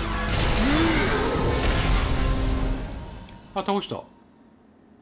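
Magic blasts crash and swirl in a battle, then fade away.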